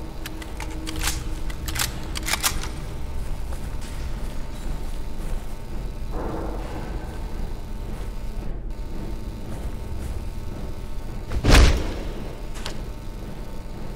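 Metal clicks and clacks as a gun is reloaded.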